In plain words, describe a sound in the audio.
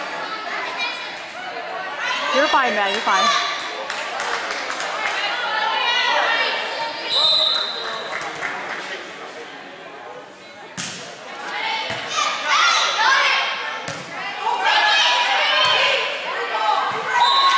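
Young women call out and cheer in a large echoing gym.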